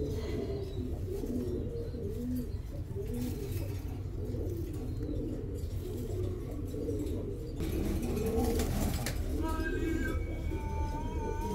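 Pigeons coo in low, rolling murmurs close by.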